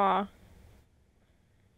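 A dog whimpers sadly.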